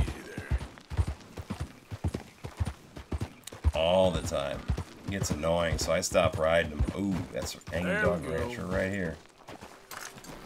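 Horse hooves clop on a dirt path.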